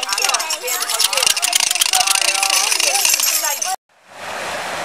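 A wooden rattle clatters rapidly.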